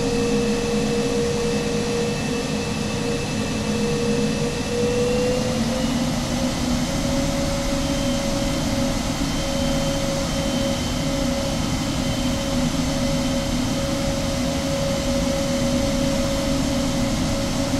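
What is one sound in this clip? Turbofan engines of a jet airliner whine steadily as it taxis, rising slightly in pitch.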